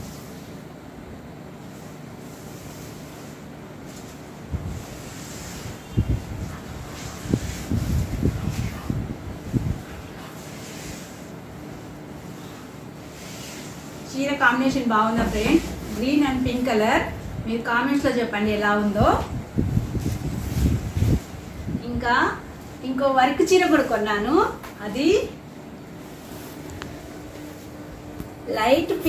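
Silk fabric rustles as it is handled and unfolded.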